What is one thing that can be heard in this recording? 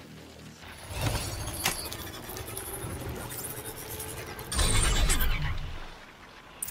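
An electronic device crackles and hums with rising energy.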